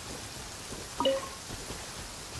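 A soft chime rings as berries are picked up.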